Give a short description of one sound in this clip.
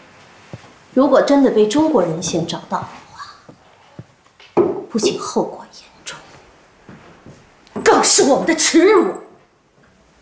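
A woman speaks firmly and closely.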